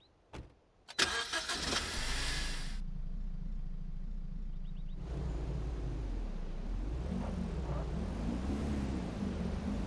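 A car engine runs and revs as the car drives off.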